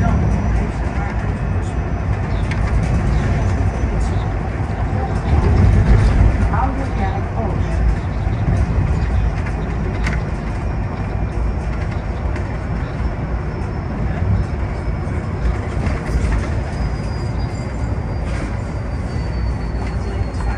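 Small rattles and knocks sound inside the bus.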